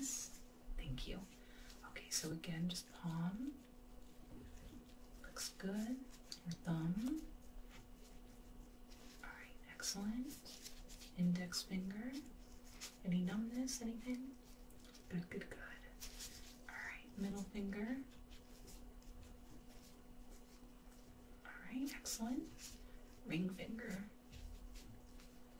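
A young woman speaks softly, close to the microphone.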